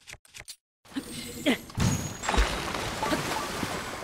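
Water splashes loudly as something plunges into it.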